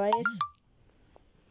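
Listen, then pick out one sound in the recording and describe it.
A phone notification chime plays briefly.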